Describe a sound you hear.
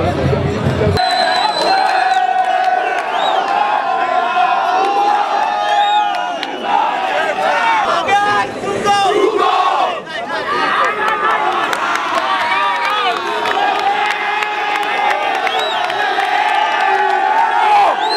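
A crowd of young people sings loudly together outdoors.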